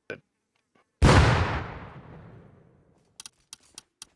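A grenade explodes with a loud, close boom that slowly fades away.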